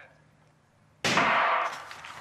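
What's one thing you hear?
A starting pistol fires with a sharp crack.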